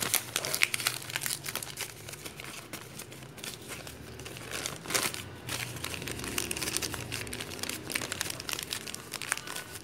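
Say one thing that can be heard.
A sheet of newspaper rustles and crinkles in someone's hands.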